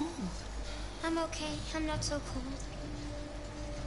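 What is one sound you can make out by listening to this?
A young girl answers in a small, shaky voice.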